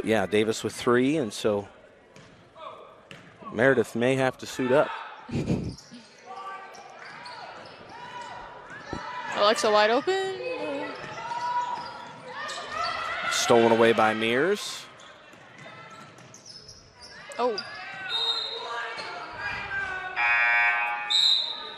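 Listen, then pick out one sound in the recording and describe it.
Young women shout on the court in a large echoing gym.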